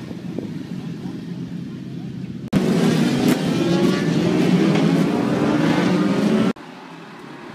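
Several motorcycle engines rumble and idle together nearby.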